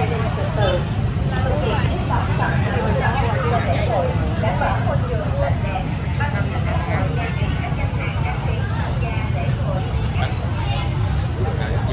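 A middle-aged woman talks calmly nearby.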